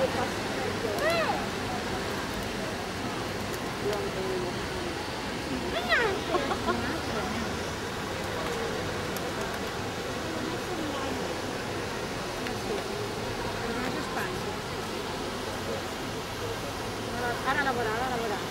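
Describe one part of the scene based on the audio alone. A young girl squeals and talks in a high voice close by.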